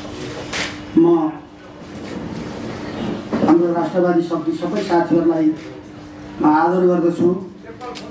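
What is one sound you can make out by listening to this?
A middle-aged man sings slowly into a microphone, holding long notes.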